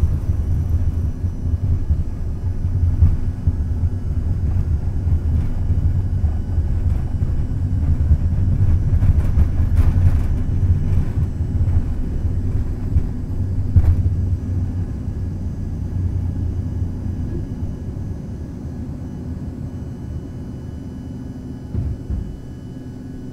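Wheels rumble and shake over a runway, then fall quiet.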